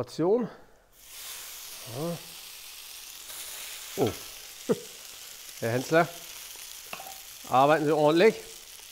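Food sizzles loudly in a hot frying pan.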